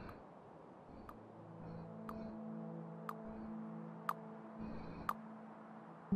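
A countdown ticks once each second with short clicks.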